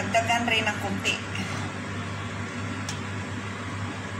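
A metal pan shifts with a light knock on a stovetop.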